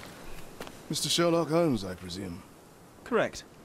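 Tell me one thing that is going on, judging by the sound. A man asks a question calmly, close up.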